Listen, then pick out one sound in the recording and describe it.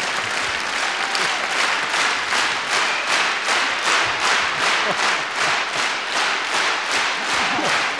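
A large crowd claps along in a fast, steady rhythm.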